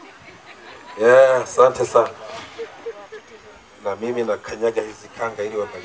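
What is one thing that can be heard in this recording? A man speaks loudly and forcefully nearby, outdoors.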